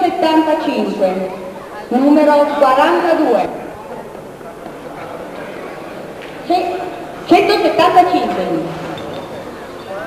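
A man speaks loudly in an echoing hall.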